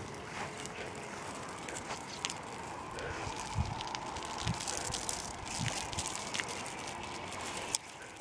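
Water sprays from a garden hose onto soil.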